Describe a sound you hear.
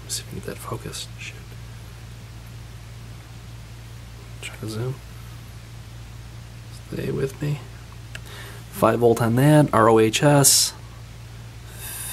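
Hands handle a small electric motor, its wires rustling and clicking softly.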